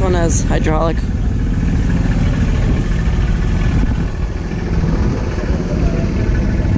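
A tractor engine idles nearby with a steady low rumble.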